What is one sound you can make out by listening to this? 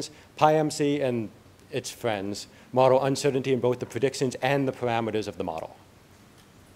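A man speaks calmly into a microphone in a large hall.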